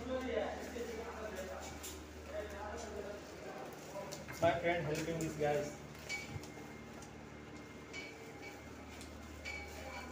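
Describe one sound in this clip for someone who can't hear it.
Foil tape crinkles and rustles.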